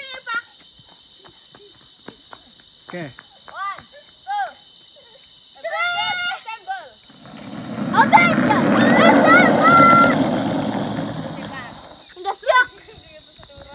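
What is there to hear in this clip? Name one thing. Young girls squeal and shout in play.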